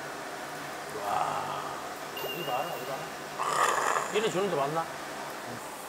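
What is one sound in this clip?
A middle-aged man speaks with animation, close by.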